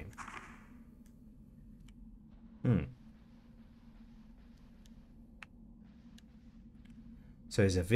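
Footsteps tap softly on a wooden floor.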